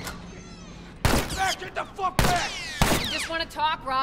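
Gunshots ring out loudly in quick bursts.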